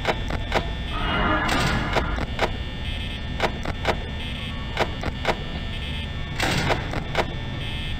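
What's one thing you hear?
A heavy metal door slides shut with a loud rattling whoosh.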